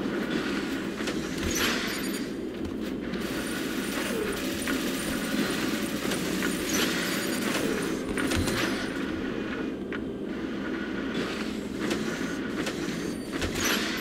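A low engine hum drones throughout.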